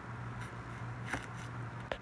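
Dry onion skin crackles as fingers peel it.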